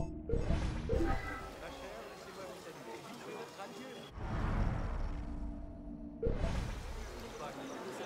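A deep whoosh sweeps past, then fades.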